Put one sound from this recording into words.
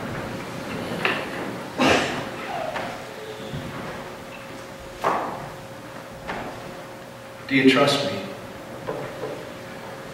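A man speaks slowly with long pauses in a room with some echo.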